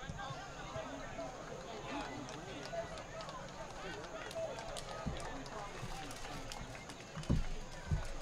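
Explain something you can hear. A crowd of spectators chatters and cheers at a distance outdoors.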